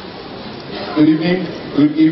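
A choir sings loudly in a large hall.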